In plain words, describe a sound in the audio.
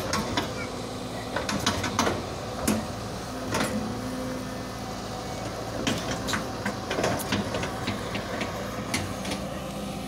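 An excavator bucket scrapes and thuds into soil and debris.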